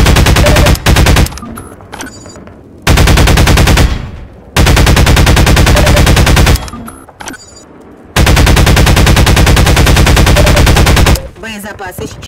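A machine gun fires rapid bursts, loud and close.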